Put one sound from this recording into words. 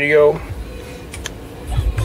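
A button clicks on a car stereo.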